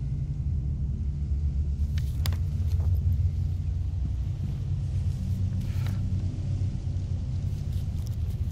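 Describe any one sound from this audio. A paper map rustles as hands unfold it.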